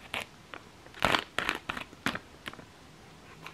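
A plastic packet crinkles and tears open.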